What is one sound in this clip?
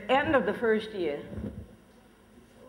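A man speaks into a microphone over a loudspeaker.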